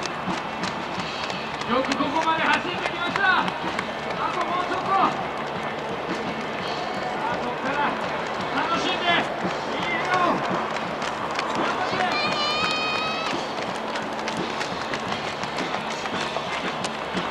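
Runners' footsteps patter on pavement.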